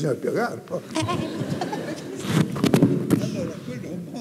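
A woman laughs into a microphone in a large hall.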